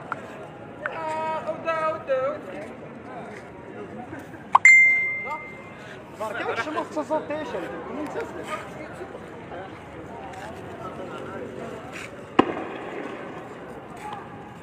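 Footsteps scuff along a paved road.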